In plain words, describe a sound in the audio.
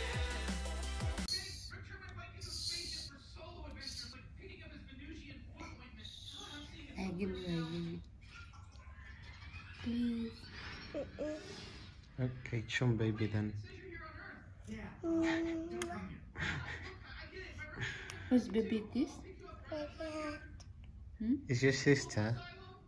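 A little girl speaks softly and haltingly up close.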